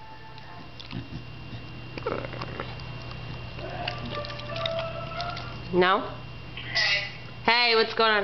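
A dog laps and chews food from a bowl.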